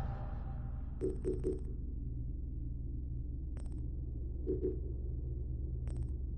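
Short menu clicks and ticks sound now and then.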